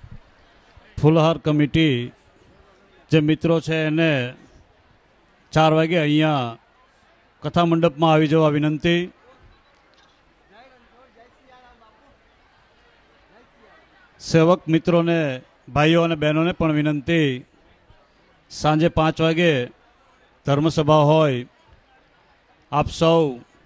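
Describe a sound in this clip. A man chants in a sung, drawn-out voice through a microphone, in short phrases with pauses.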